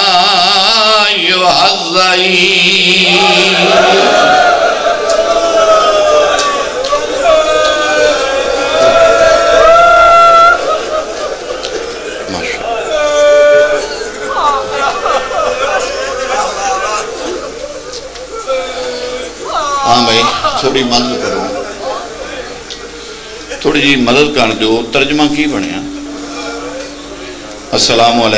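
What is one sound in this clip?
A man recites with feeling into a microphone over a loudspeaker, his voice rising and falling in long, drawn-out lines.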